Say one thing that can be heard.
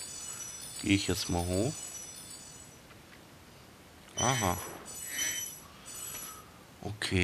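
Bright sparkling chimes ring as gems are collected.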